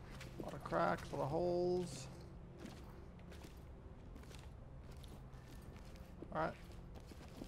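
Footsteps crunch slowly over debris on the floor.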